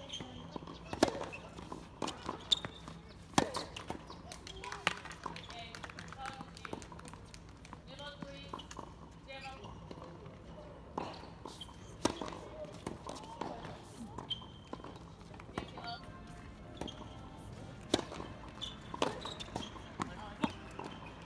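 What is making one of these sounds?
A tennis ball is struck with sharp pops of a racket.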